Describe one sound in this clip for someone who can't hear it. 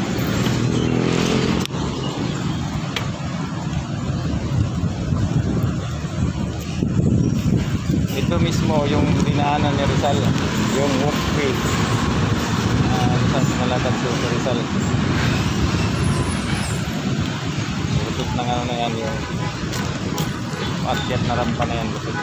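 Bicycle tyres roll over a paved road.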